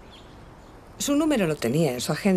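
A middle-aged woman speaks warmly, close by.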